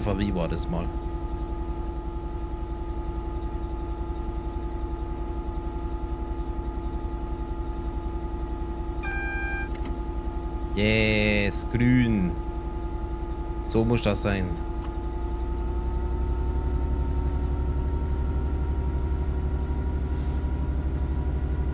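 A train engine hums steadily while driving.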